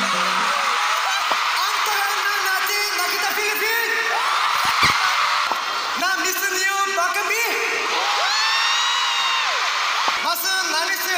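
A large crowd of young women screams and cheers loudly.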